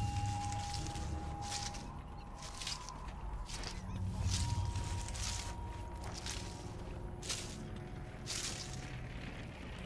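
Leaves rustle as someone crawls through dense bushes.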